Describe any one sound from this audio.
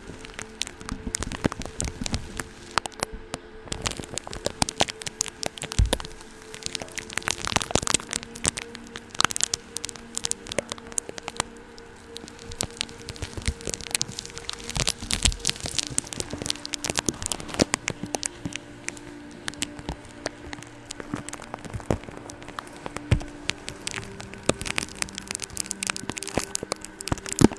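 A brush sweeps and scratches softly against a microphone, very close.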